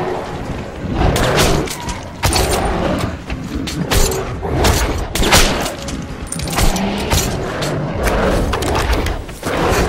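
Gunshots fire in quick bursts, echoing.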